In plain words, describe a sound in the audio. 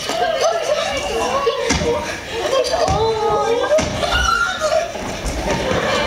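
Feet scuffle and stamp on a wooden stage floor.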